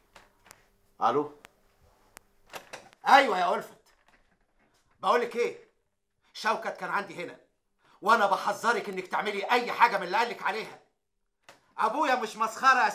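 A middle-aged man speaks forcefully into a telephone, close by.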